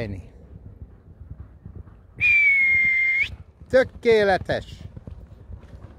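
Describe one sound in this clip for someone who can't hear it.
Horse hooves thud on soft sand as horses gallop past.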